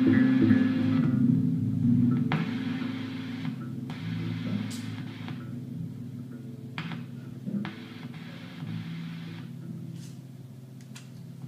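Electronic tones drone and pulse through a loudspeaker, slowly fading.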